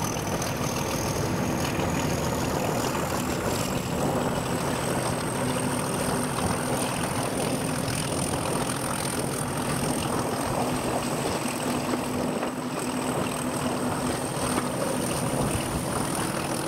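A diesel locomotive engine rumbles steadily close by.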